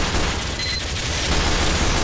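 A turret gun fires in rapid bursts.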